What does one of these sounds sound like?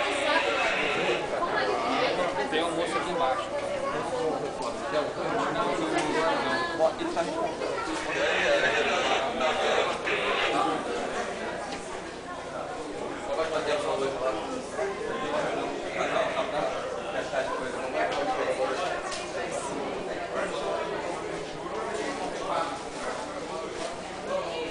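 Several adults talk over one another nearby, in a room that echoes.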